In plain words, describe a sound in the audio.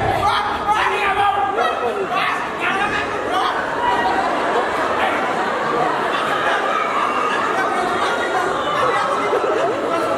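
Several men and women clamour and shout at once.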